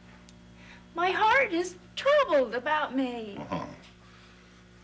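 A woman speaks with emotion, close by.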